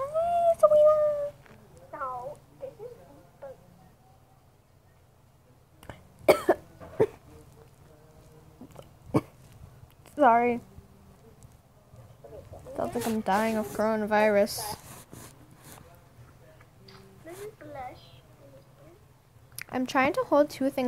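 A young girl talks with animation over an online call.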